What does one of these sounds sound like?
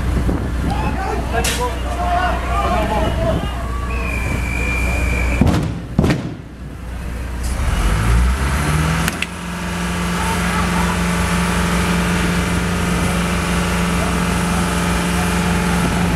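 A heavy truck engine rumbles and revs close by.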